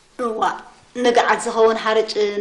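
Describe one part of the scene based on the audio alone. A middle-aged woman speaks calmly and close by.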